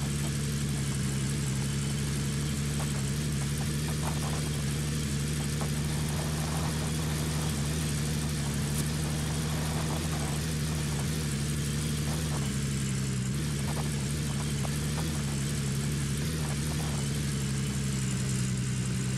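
Tyres rumble and crunch over a rough dirt track.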